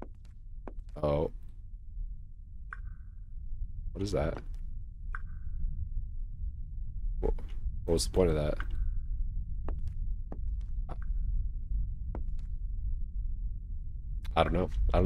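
A young man speaks in short bursts, close to a microphone.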